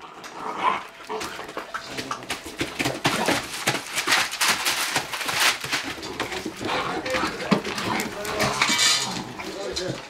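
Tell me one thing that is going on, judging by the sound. Great Dane puppies growl and yip while play-fighting.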